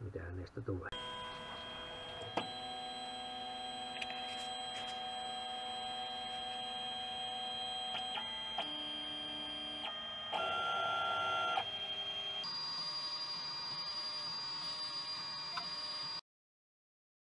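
A 3D printer's stepper motors whine with steady, shifting tones.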